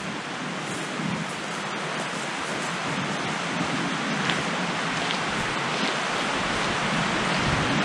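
Footsteps crunch on gravel, moving away.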